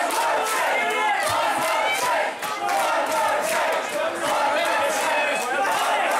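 A large crowd sings along and cheers loudly in a big echoing tent.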